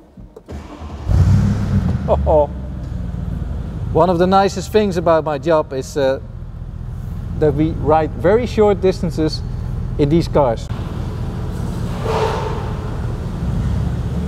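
A car engine starts with a roar and then idles with a low rumble.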